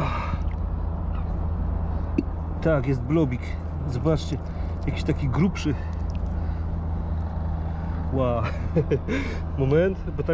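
Wet mud squelches as a bottle is pulled out of it.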